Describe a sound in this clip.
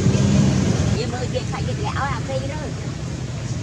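A young monkey gives high, squeaky cries.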